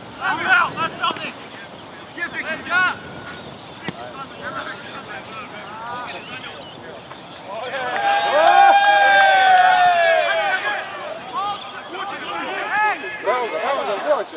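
A football is kicked with a dull thump.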